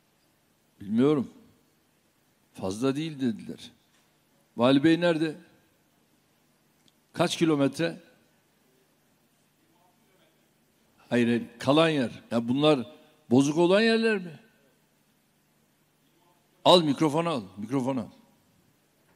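An older man speaks firmly into a microphone, heard through loudspeakers in a large hall.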